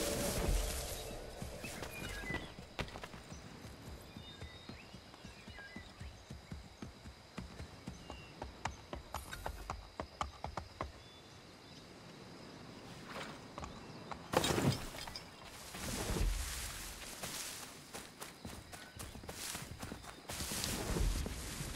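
Footsteps crunch on grass and leaves.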